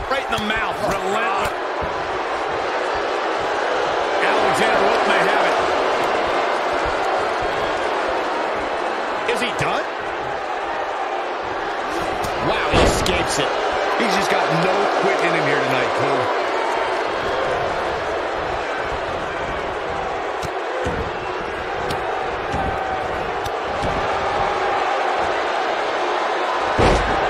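A large crowd cheers and roars steadily throughout.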